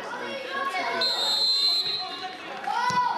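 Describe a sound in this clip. A referee's whistle blows once, shrill and short.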